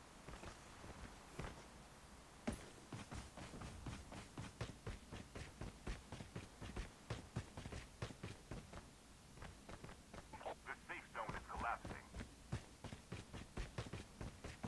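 Footsteps thud quickly and steadily on grass and ground.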